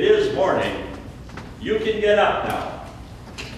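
A man speaks loudly on stage, heard from the audience in a large hall.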